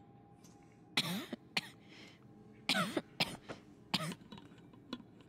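A woman coughs weakly.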